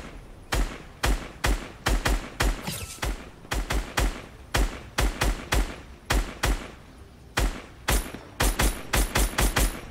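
A rifle fires single loud shots in quick succession.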